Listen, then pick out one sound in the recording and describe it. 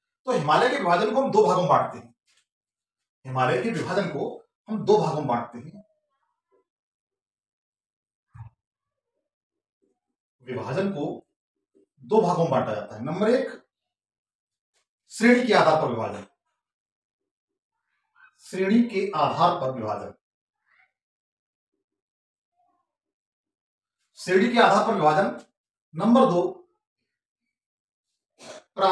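A man speaks calmly and clearly close by, in short phrases with pauses.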